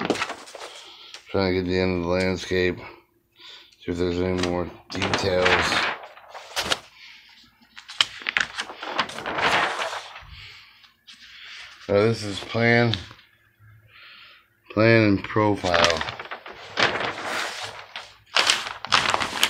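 Paper sheets rustle and crinkle as they are handled close by.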